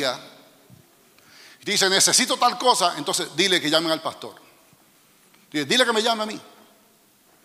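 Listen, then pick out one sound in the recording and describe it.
A middle-aged man speaks with animation into a microphone in a large echoing hall.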